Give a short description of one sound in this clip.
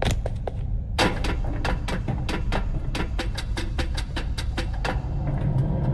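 Footsteps clang on metal stairs and a grated walkway.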